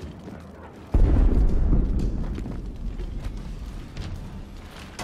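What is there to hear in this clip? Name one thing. Wreckage collapses with a loud, deep crash that slowly fades.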